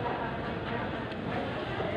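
A plastic bag rustles close by.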